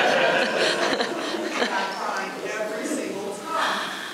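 A woman speaks cheerfully in an echoing room.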